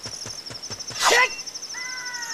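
A sword is drawn with a sharp metallic swish.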